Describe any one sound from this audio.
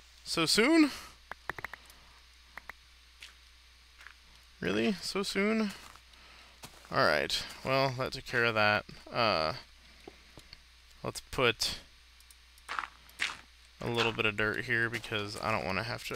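Blocks of dirt and stone crunch as they are dug out with a pickaxe.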